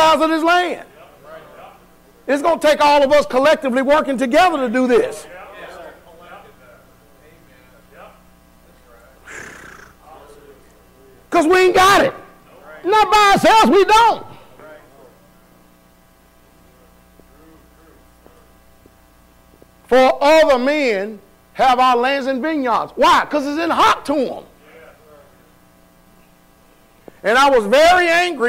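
A man preaches loudly and with animation through a microphone in an echoing hall, pausing between bursts.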